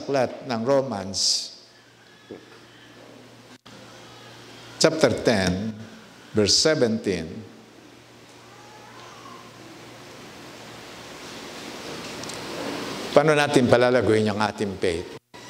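An older man speaks calmly into a microphone, heard through loudspeakers with pauses between phrases.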